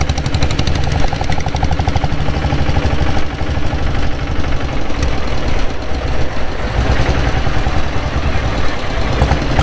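Wind rushes past while riding.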